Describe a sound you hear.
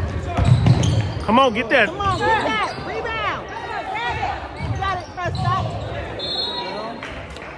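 Sneakers squeak on the hardwood court.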